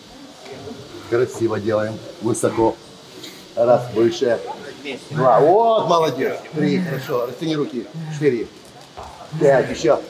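An older man speaks with animation close by.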